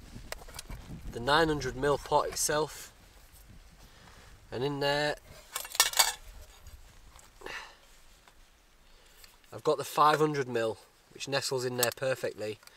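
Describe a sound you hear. A metal cup clinks and scrapes as it is handled.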